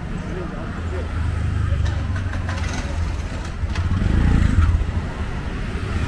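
A motorised rickshaw's engine putters close by and passes.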